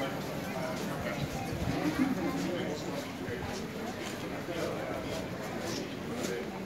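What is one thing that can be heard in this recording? A crowd murmurs and talks outdoors.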